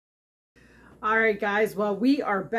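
A middle-aged woman talks close to a microphone with animation.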